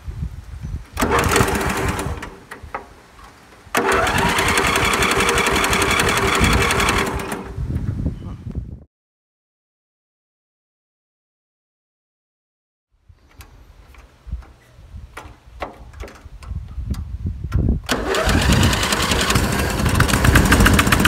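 A lawn mower engine sputters and roars close by.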